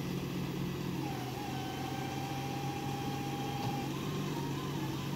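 A winch motor whines steadily as it pulls.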